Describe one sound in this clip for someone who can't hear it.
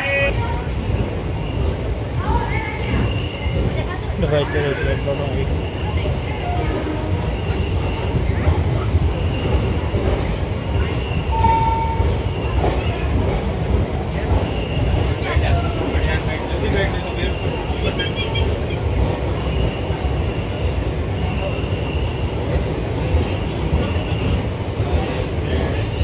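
Strong wind gusts and roars outdoors.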